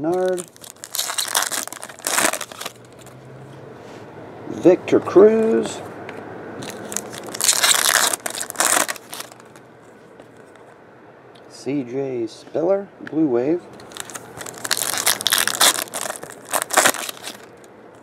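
Foil wrappers crinkle and tear as they are ripped open.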